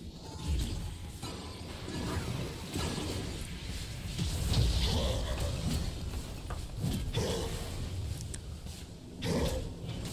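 Blows and hits thud in quick succession.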